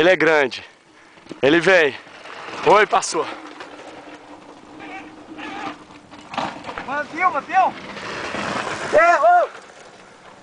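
A mountain bike rattles past over loose, dusty dirt.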